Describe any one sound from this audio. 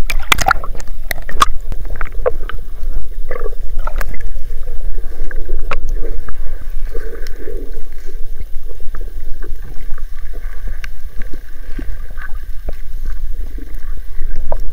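Water rumbles and sloshes, heard muffled from underwater.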